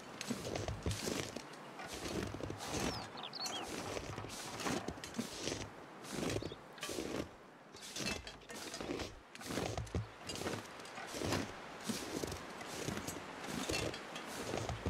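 Footsteps crunch steadily through deep snow.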